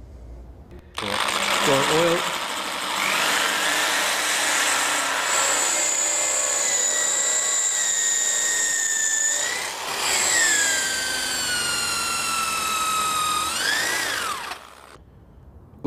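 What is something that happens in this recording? An electric drill whirs steadily through metal, its pitch shifting under load.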